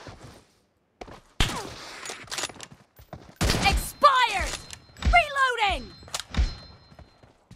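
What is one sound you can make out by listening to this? A gun fires in loud sharp bursts.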